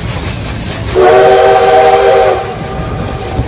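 A steam whistle blows loudly.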